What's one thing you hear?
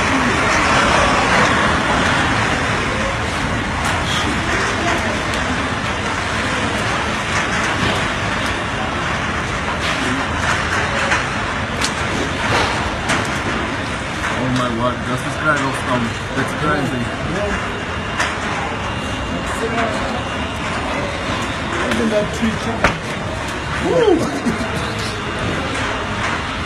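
Rain lashes hard against a window.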